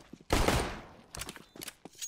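A thrown grenade bursts with a loud hiss.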